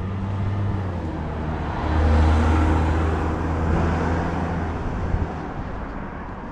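A car drives past nearby and fades away.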